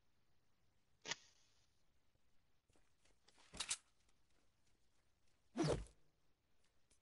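Weapon blows land with sharp, heavy thuds.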